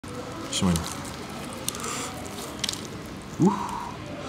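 Crispy fried chicken crunches as a man tears it apart.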